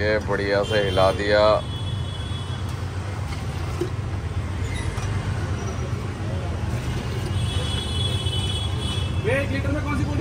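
Juice pours back and forth into a steel jug.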